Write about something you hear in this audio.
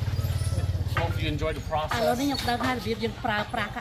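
A woman speaks close to a microphone.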